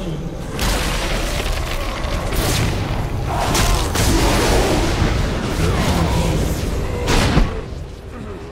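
Magic spells whoosh and crackle in a fast fight.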